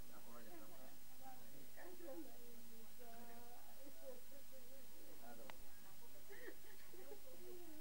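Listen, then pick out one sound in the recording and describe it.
A middle-aged woman sobs and wails loudly close by.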